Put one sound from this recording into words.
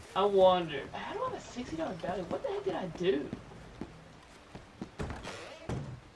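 Boots thud on wooden boards.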